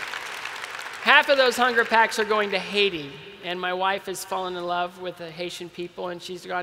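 A middle-aged man speaks calmly through a microphone in a large echoing hall.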